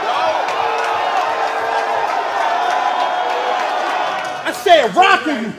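A crowd cheers loudly in a large room.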